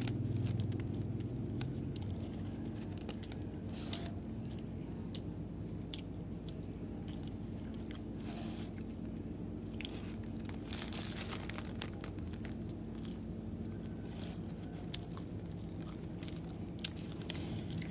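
A paper wrapper crinkles in a hand.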